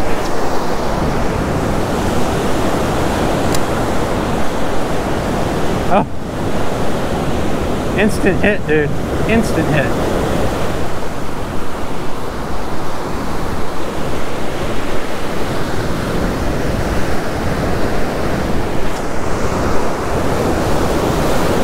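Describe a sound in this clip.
Waves break and wash up on a beach.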